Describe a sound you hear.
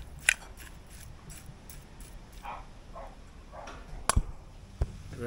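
A metal spoon clinks and scrapes against a bowl.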